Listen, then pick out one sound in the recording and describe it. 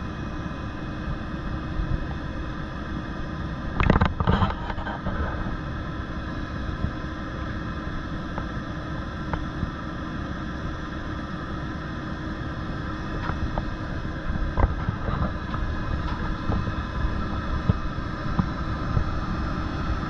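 A crane winch whirs as it lowers a hook.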